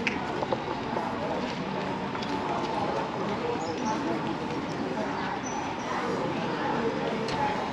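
Footsteps tap on a paved street nearby.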